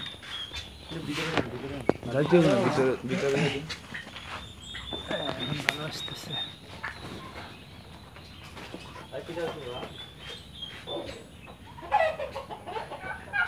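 Turkeys gobble and cluck loudly nearby.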